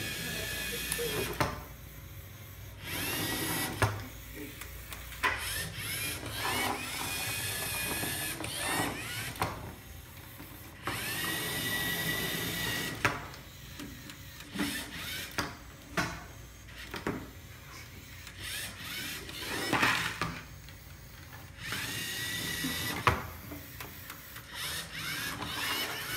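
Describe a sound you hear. A small robot's motors whir as it drives across a table.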